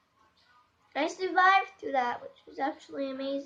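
A young girl sings close to a microphone.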